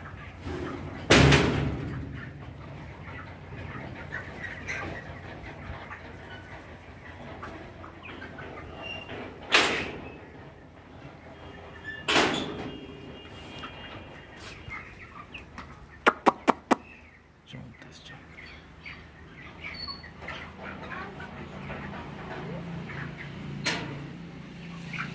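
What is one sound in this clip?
Many chicks cheep and peep constantly.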